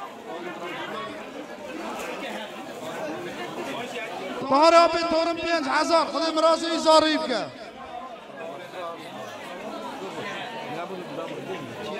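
Several men talk in the background.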